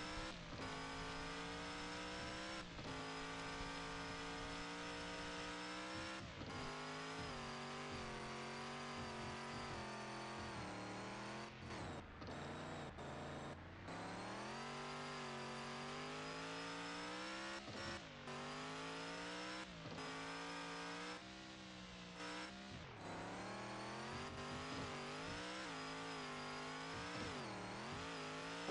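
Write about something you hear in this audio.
A truck engine hums and revs, its pitch rising and falling as it climbs.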